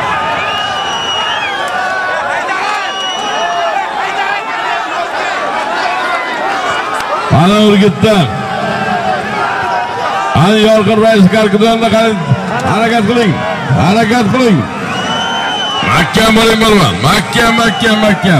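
A large crowd of men shouts and chatters outdoors.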